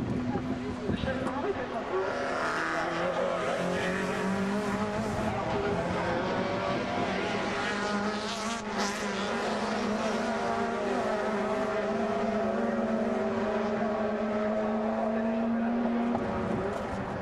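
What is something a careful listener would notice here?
Racing car engines roar loudly as cars speed past.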